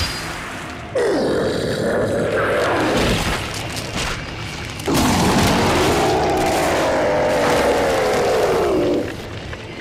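A monster lets out long, wavering, drawn-out roars.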